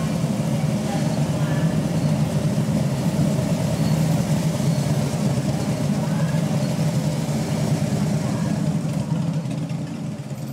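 Police motorcycle engines rumble steadily close by.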